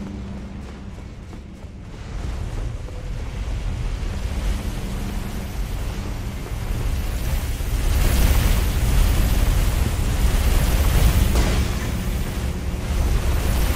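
Armoured footsteps run quickly over stone.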